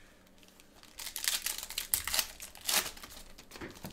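Foil card packs crinkle and rustle as they are torn open.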